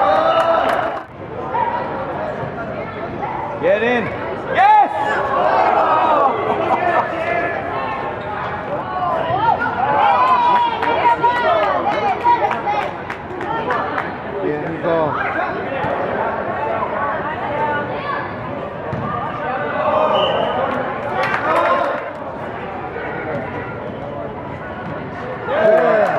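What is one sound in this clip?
Young players and spectators shout and call out in a large echoing hall.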